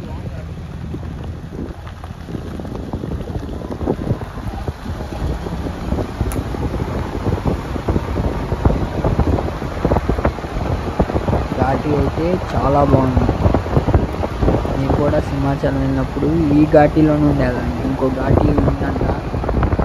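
Wind buffets against a car window.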